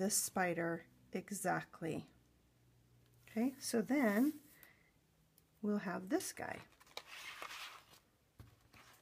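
A thin plastic sleeve crinkles and rustles as it is handled.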